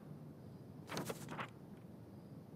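Paper rustles as a sheet is turned over.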